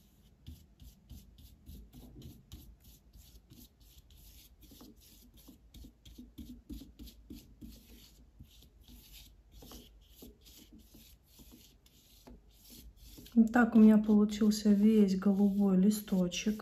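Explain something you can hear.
A brush swishes softly across paper in quick, repeated strokes.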